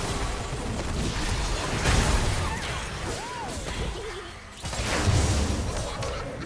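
Fiery explosions burst and roar.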